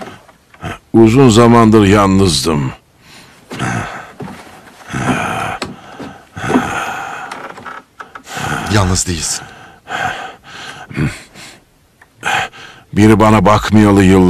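An elderly man speaks slowly and wearily close by.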